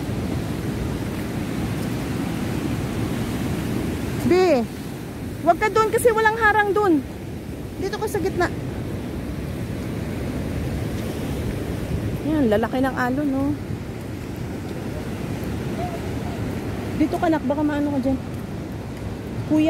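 Waves crash and churn against a rocky shore in a steady roar.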